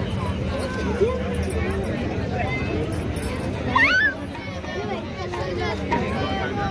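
A crowd of people chatter loudly nearby.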